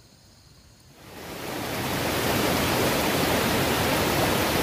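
A stream rushes loudly over rocks.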